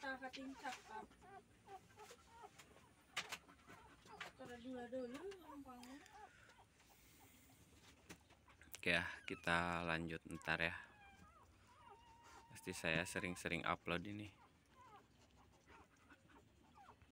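Newborn puppies squeak and whimper close by.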